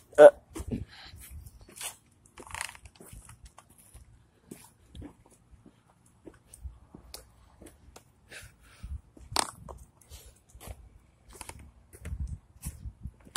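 A dog's claws patter on concrete.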